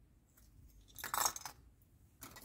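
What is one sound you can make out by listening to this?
Small metal parts clink as they are set down on a hard surface.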